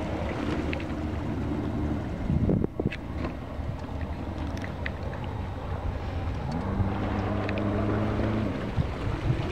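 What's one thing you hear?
A small boat motor hums steadily, stopping and starting again.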